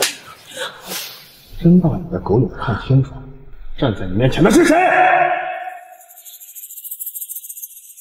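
A man groans in pain.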